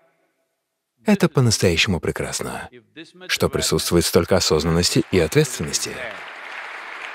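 An elderly man speaks calmly and thoughtfully, close to a microphone.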